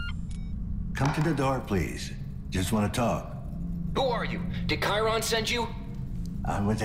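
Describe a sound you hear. A man speaks through an intercom loudspeaker.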